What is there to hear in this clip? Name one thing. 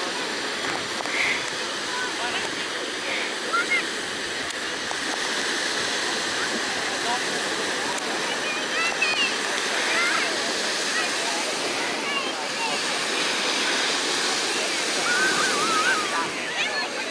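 Small waves break and wash onto a sandy shore.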